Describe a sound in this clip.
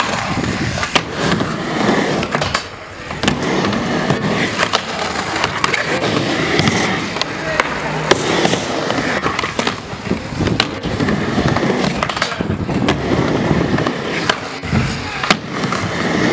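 A skateboard clacks sharply against the ramp's metal edge.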